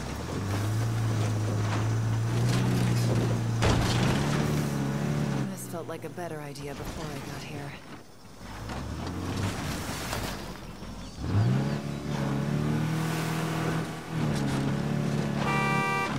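A van engine drones and revs as it drives over rough ground.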